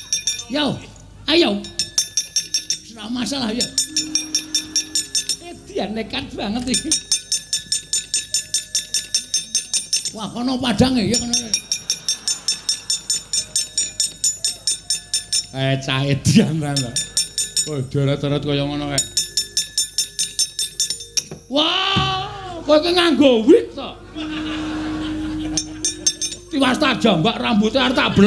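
Metal plates clang in a quick, steady rhythm.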